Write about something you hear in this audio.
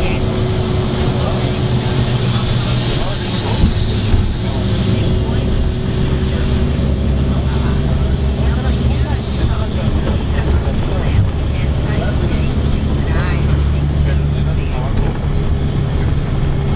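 A bus engine rumbles steadily from inside the moving vehicle.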